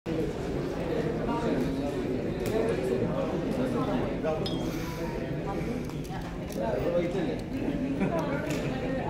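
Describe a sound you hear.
A crowd of people chatters all around in a large room.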